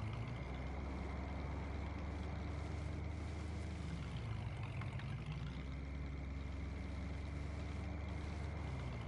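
A truck engine hums steadily, dipping lower in pitch as it slows and then rising again as it speeds up.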